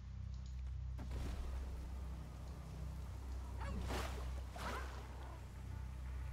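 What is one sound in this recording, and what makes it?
Game effects whoosh in rushing swirls.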